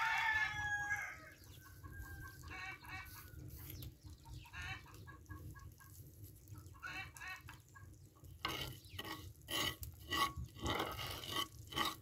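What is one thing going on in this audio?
Eggs sizzle softly in a hot pan.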